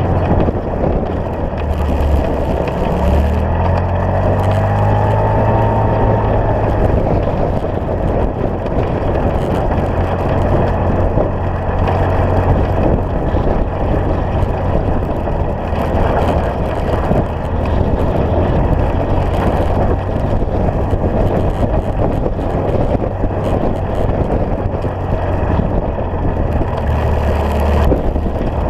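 An engine hums steadily and revs up and down.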